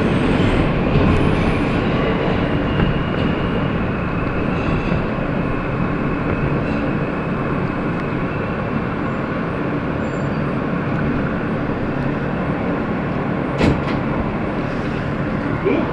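A subway train rumbles and rattles loudly along the tracks.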